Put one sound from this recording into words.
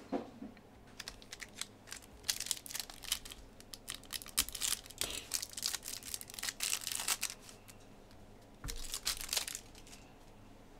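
A foil card pack crinkles and rustles as it is torn open.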